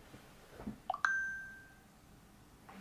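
A phone gives a short high chime.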